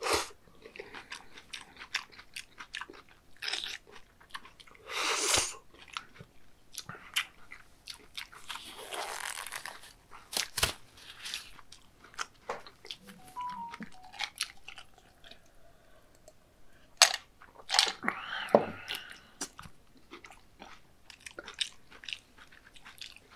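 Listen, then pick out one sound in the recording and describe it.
A man chews wetly and smacks his lips.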